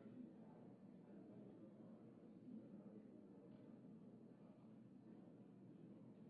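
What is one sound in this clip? Many people murmur and talk quietly in a large echoing hall.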